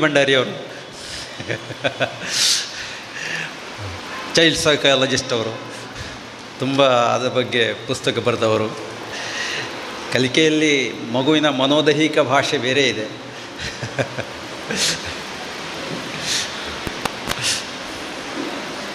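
An elderly man speaks steadily into a microphone through a loudspeaker in an echoing hall.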